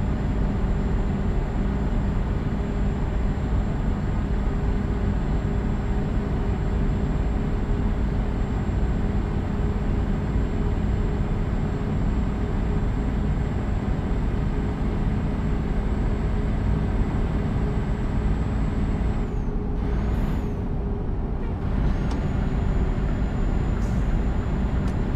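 Tyres roll on a motorway with a constant rumble.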